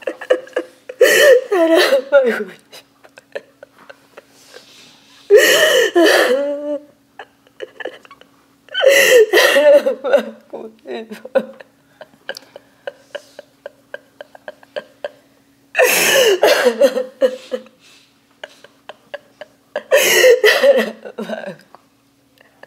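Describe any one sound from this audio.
An elderly woman speaks in short bursts, close by.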